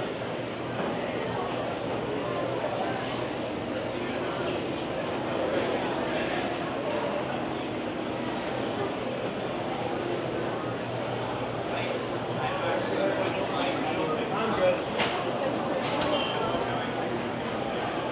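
A crowd of people chatters throughout an indoor space that echoes a little.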